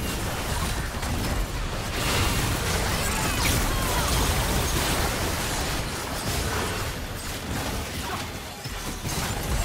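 Magic spells blast and crackle in a fast fight.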